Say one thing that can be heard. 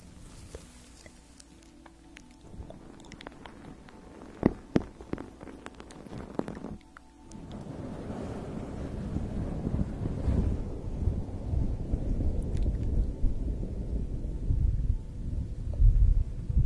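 A young woman whispers close to a microphone.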